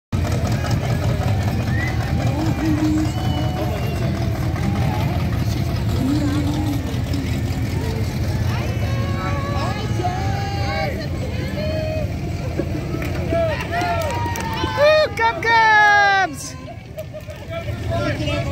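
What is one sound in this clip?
People in a crowd talk and call out outdoors.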